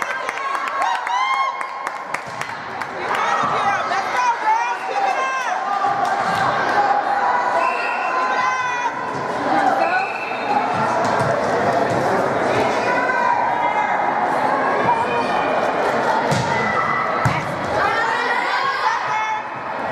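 Teenage girls shout and cheer in an echoing gym hall.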